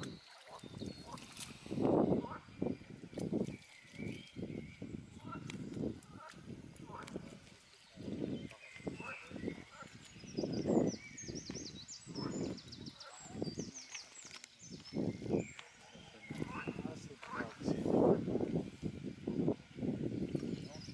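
A swan dabbles its bill in shallow water with soft splashing.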